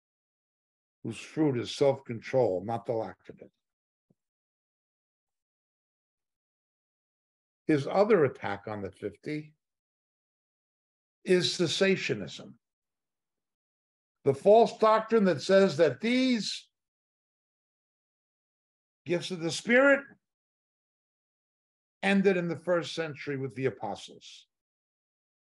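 An older man speaks calmly and slowly into a close microphone, pausing between phrases.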